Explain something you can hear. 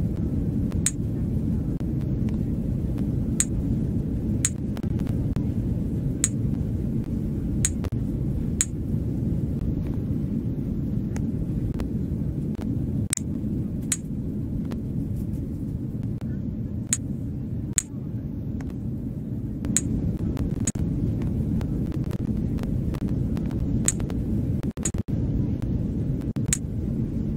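A steady low cabin hum drones throughout, like inside an airliner in flight.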